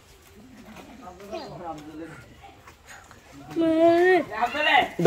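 A young boy talks and calls out playfully close by.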